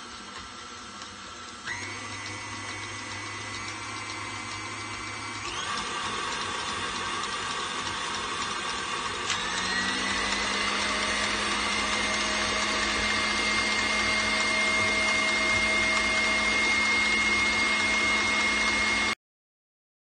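An electric stand mixer whirs steadily and steps up in speed a few times.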